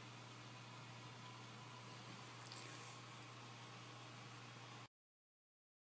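Water gurgles and splashes inside a tank.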